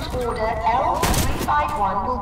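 An assault rifle fires a single shot.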